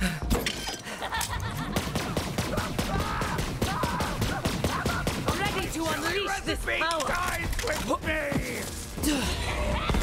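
Guns fire in rapid bursts with sharp energy zaps.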